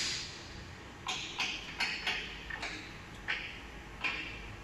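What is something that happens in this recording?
A wooden door panel knocks and clatters as it is lifted.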